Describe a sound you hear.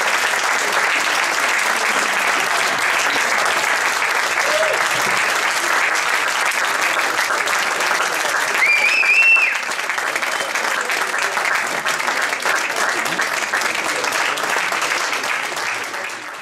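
A seated audience murmurs and chatters in a large hall.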